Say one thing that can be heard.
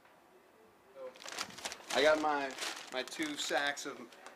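A paper bag rustles as a hand lifts it.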